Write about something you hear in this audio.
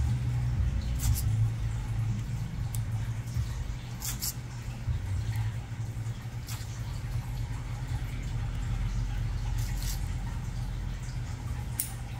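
Nail nippers snip through a toenail with small sharp clicks.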